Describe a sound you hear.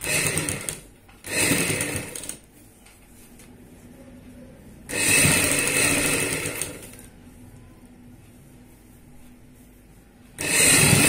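A sewing machine stitches in short, rapid bursts.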